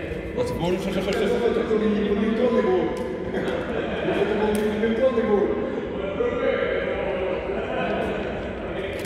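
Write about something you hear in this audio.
A man talks calmly nearby in an echoing hall.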